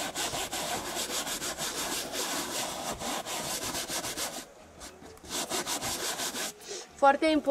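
A stiff brush scrubs rapidly across a leather seat.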